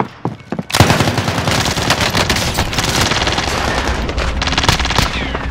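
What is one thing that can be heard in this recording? An assault rifle fires in rapid automatic bursts.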